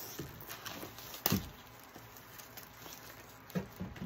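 A knife slices through packing tape.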